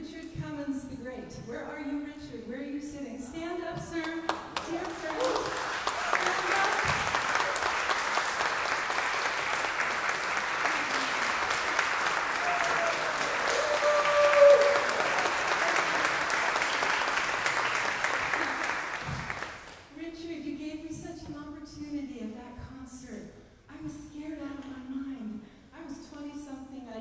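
A woman speaks with animation into a microphone over loudspeakers.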